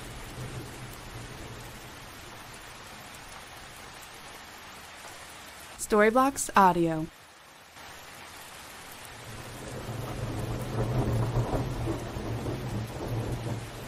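Thunder rumbles in the distance.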